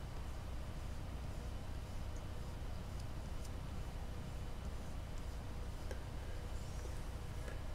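A tool scratches and taps lightly on a carved surface.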